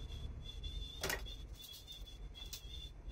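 Metal tools clink as they are picked up and handled.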